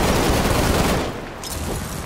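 A blast rumbles loudly and dies away.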